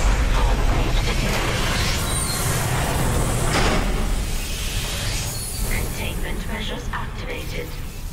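A calm synthetic woman's voice announces warnings over a loudspeaker.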